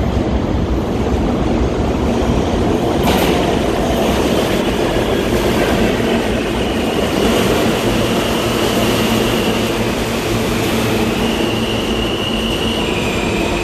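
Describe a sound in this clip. A subway train approaches and rumbles into an echoing underground station.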